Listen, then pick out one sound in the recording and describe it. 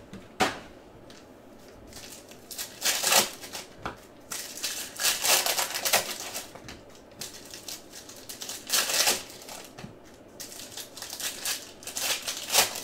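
Foil wrappers crinkle and rustle close by.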